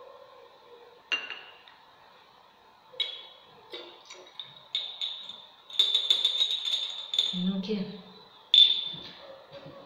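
Glass clinks against glass.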